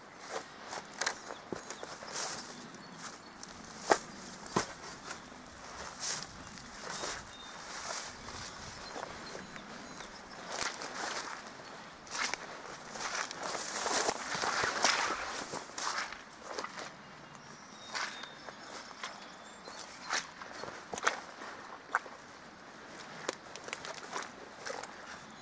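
Footsteps crunch and rustle through dry grass close by.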